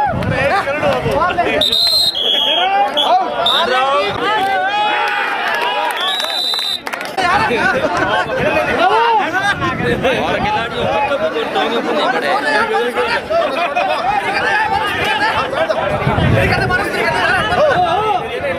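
A large outdoor crowd shouts and cheers.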